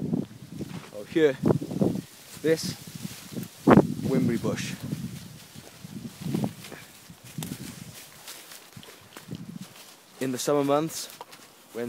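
Clothing rustles against the microphone.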